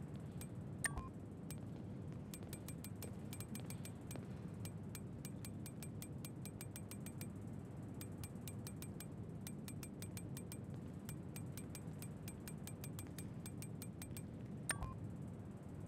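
A menu gives a brighter chime when a selection is confirmed.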